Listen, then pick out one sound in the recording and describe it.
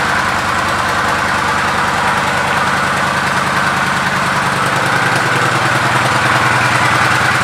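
A motorcycle engine idles steadily with a rapid, throbbing rumble.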